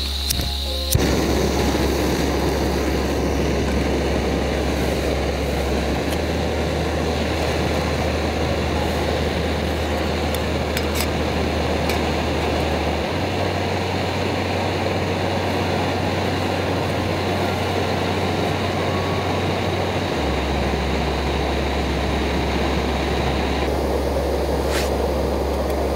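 A small camping gas stove roars steadily.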